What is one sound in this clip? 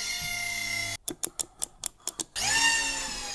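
A power supply knob clicks as it is turned.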